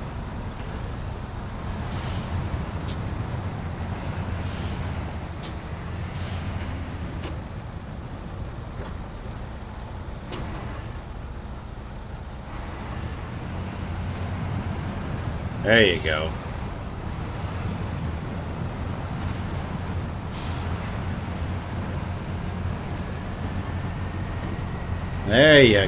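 Truck tyres churn through mud and gravel.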